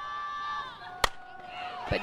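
A bat cracks against a softball.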